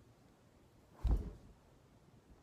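A thump sounds as a young woman drops to the floor.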